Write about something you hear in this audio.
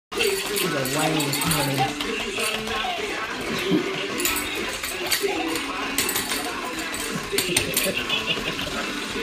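Puppies whine and yip.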